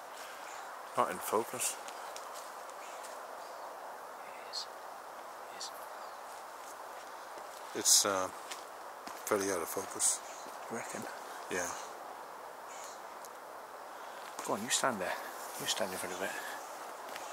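A man speaks close by in short bursts, with pauses between.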